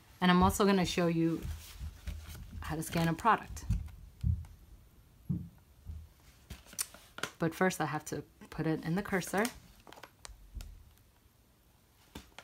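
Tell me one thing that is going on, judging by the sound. A cardboard carton rustles and taps against a wooden table.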